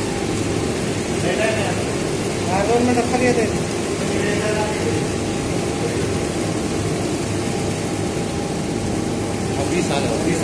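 Water pours steadily from hoses into plastic tubs.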